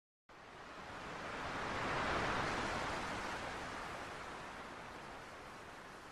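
Waves wash onto a beach in a steady roar.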